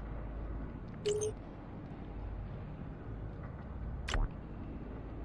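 A short electronic chime sounds as a game menu opens.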